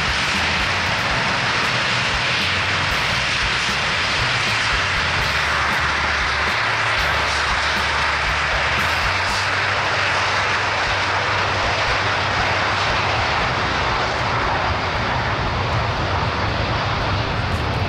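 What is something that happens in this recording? Jet engines roar and whine steadily close by.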